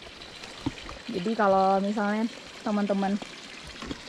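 Water trickles from a pipe onto wet ground.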